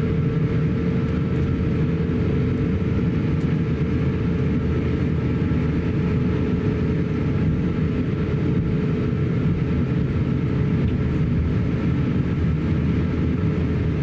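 Jet engines hum steadily in a low, droning whine.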